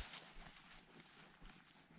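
Footsteps swish through long grass.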